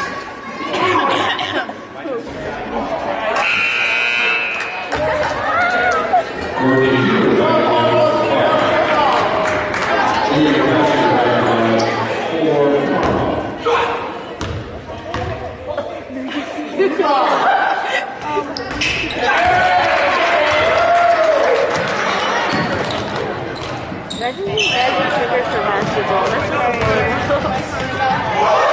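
Spectators chatter and call out throughout a large echoing gym.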